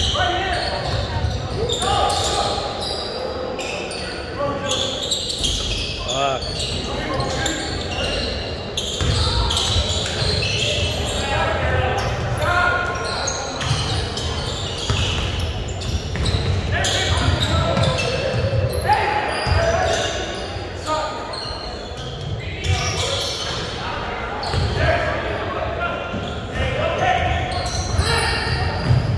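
Sneakers squeak on a wooden court in a large echoing gym.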